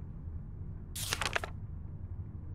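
A paper page flips over.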